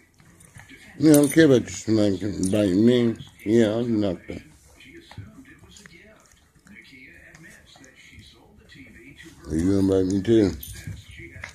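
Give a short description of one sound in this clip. A small dog whines and yelps up close.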